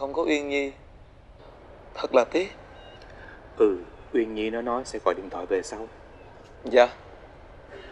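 A young man speaks softly and slowly, close by.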